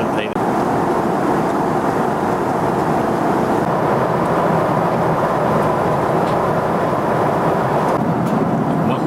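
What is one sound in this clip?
A steady roar of an airliner cabin in flight fills the air.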